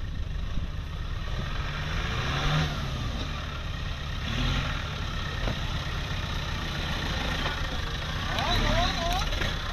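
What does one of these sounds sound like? A second off-road vehicle's engine roars and revs up close.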